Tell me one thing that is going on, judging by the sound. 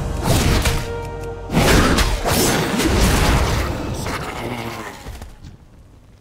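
Spell effects crackle and burst during a fight.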